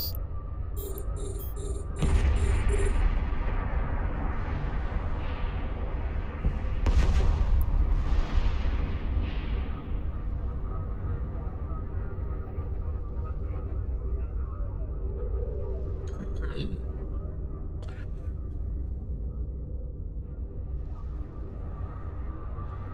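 A deep low hum drones steadily.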